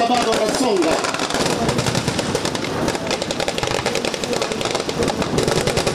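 Machine guns fire in rapid bursts outdoors.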